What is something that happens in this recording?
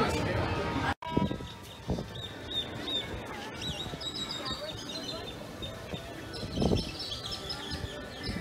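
Flamingos call faintly outdoors.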